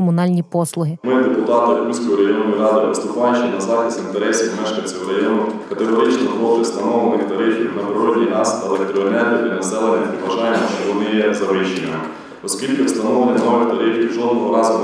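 A man reads aloud steadily into a microphone.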